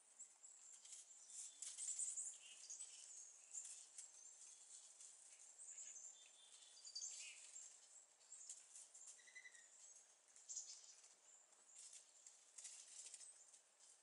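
A turkey's feet rustle through dry leaves.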